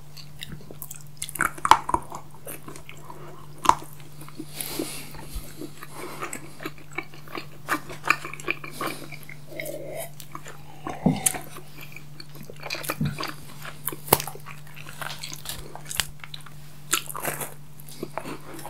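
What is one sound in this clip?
Chocolate coating crunches and crackles as it is bitten.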